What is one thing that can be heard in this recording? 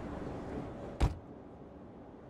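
A door slams shut with a loud thud.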